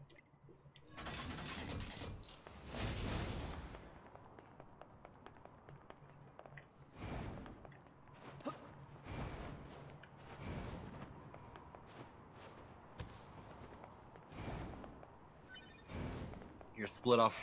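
Game action whooshes and thuds.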